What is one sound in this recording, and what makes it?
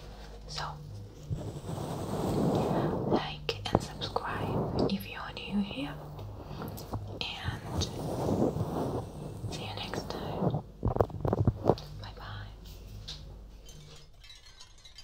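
A young woman whispers softly, close to a microphone.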